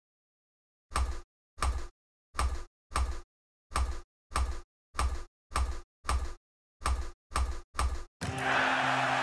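A ping-pong ball knocks back and forth across a table.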